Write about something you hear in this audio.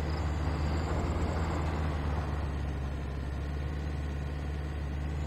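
Tyres roll and crunch over a rough dirt track.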